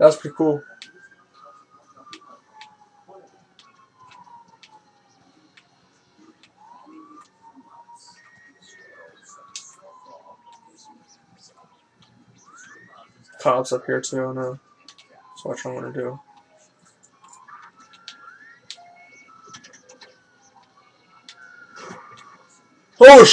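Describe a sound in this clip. A police car siren wails.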